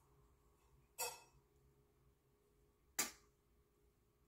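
A small container clatters briefly in a hand.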